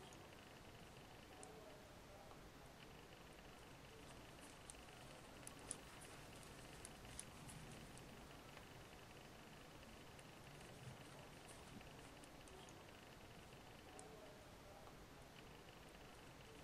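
Fingers softly rub and rustle a length of yarn.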